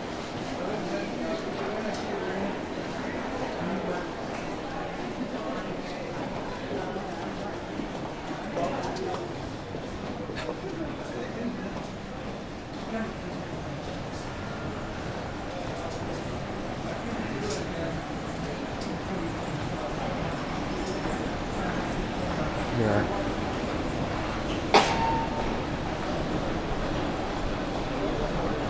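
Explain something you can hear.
A crowd of shoppers murmurs indistinctly throughout a busy indoor space.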